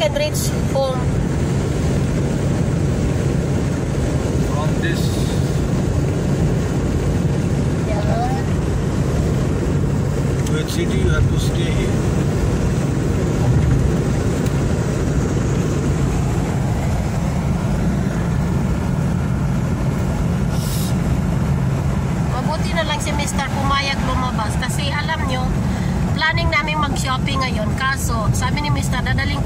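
A car engine and tyres hum steadily on a road.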